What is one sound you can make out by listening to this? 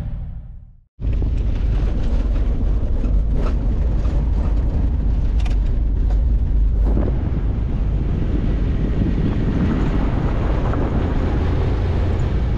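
A car engine rumbles steadily as tyres roll over a road.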